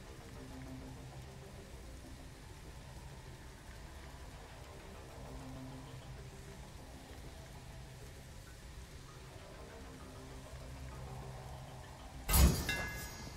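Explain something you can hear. Soft, low music plays steadily.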